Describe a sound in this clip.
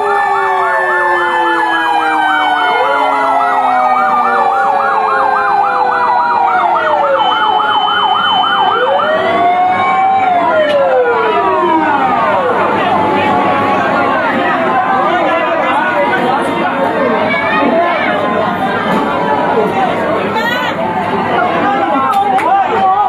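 Several fire engine sirens wail and yelp loudly close by.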